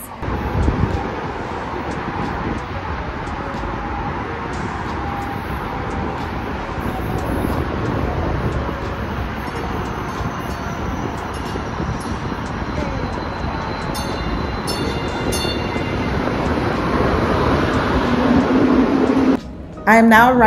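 Wind blusters outdoors.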